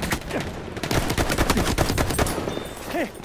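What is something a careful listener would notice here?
A pistol fires shots.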